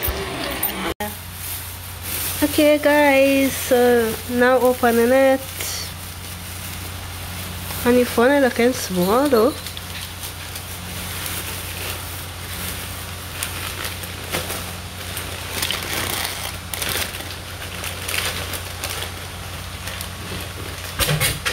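A plastic bag crinkles and rustles as hands handle it.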